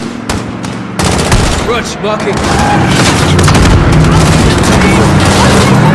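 Heavy explosions boom and rumble in the distance.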